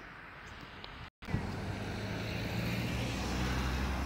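A van drives past close by on a road.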